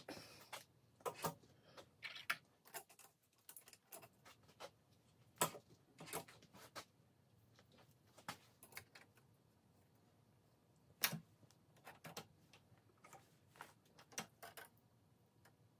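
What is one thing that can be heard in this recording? Metal parts click and clink as valve springs are fitted onto an engine head.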